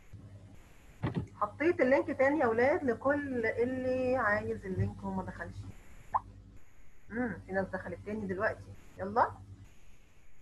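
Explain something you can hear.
A young woman speaks calmly through a headset microphone over an online call.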